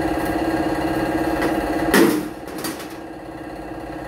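A hammer knocks on metal.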